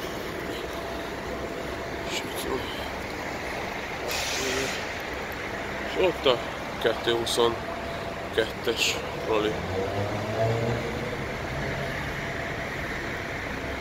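Traffic hums steadily outdoors in a busy street.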